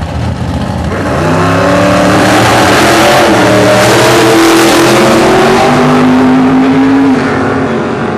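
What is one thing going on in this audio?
Loud drag racing engines roar and rev as the cars launch.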